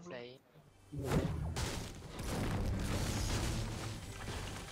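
A pickaxe chops through a wooden roof with sharp thuds.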